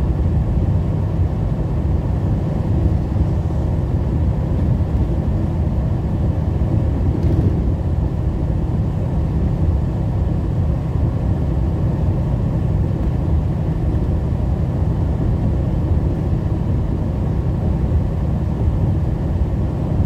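A truck's engine drones steadily from inside the cab.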